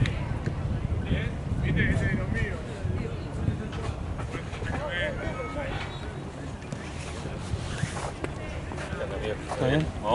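Young players talk and call out in the distance, outdoors.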